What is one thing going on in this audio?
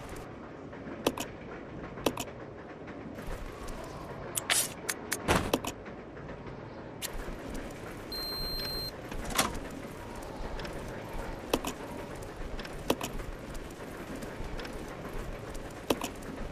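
Short sharp clicks sound now and then.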